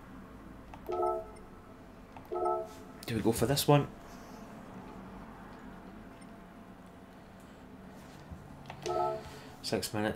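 Short electronic menu chimes beep a few times.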